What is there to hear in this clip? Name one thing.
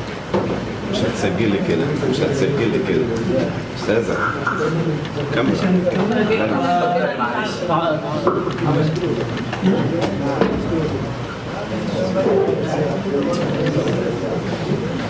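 Several men talk at once nearby.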